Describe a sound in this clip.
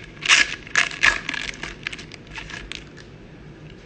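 A foil wrapper crinkles and rustles.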